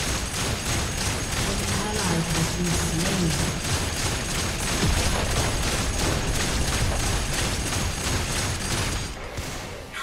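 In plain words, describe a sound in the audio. Video game weapons clash and strike in rapid bursts.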